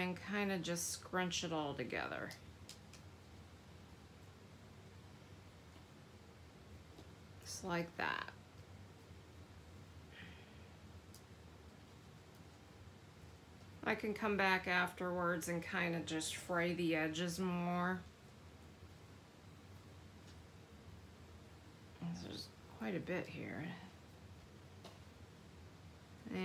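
Paper rustles softly as fingers fold and press it.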